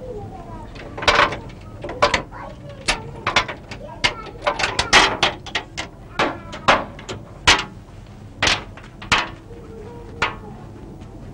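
A metal latch clicks and clanks on a door.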